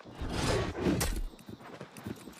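A blade strikes a creature with heavy thuds.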